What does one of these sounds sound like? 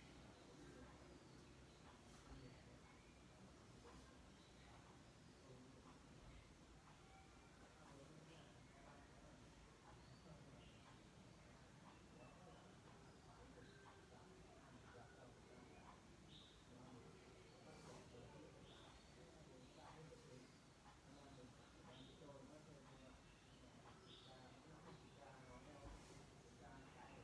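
A television plays faintly across the room.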